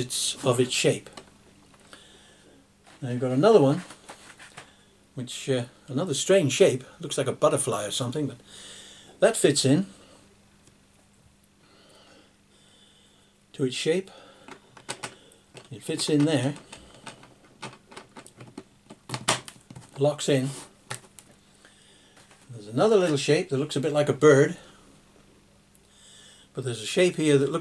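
An elderly man talks calmly close by, in short bursts with pauses.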